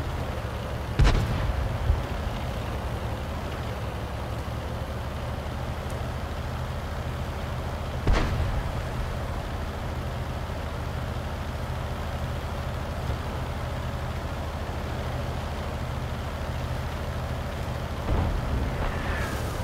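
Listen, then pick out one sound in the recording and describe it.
Cannon shots boom now and then.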